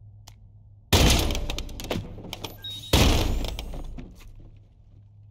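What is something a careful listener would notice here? Two loud gunshots boom and echo.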